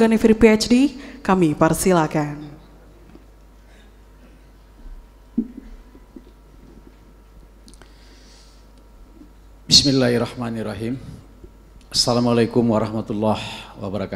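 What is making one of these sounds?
A man speaks calmly into a microphone through loudspeakers in a large echoing hall, with long pauses.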